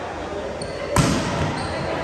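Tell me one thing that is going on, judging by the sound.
A volleyball is struck with a loud smack that echoes through a large hall.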